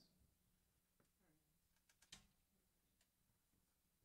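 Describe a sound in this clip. An acoustic guitar is handled with soft knocks and taps.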